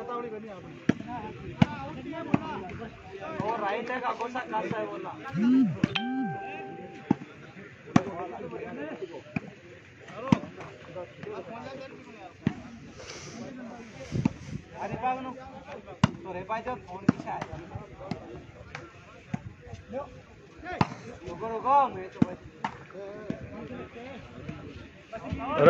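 Hands hit a volleyball with sharp slaps outdoors.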